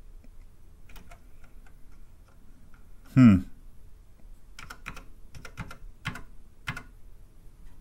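Keys on a keyboard click under a finger.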